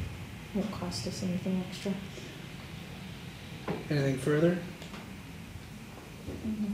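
A man speaks calmly through a microphone in a room with a slight echo.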